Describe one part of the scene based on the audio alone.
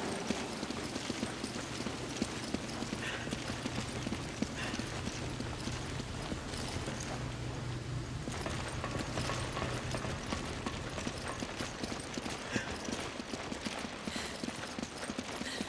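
Footsteps run over a hard floor.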